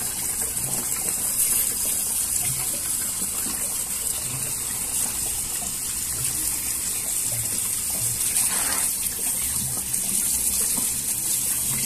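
A sponge scrubs and squelches against wet plastic slats.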